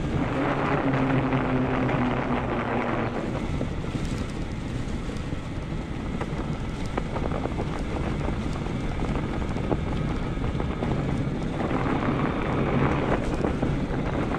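Bicycle tyres crunch over packed snow.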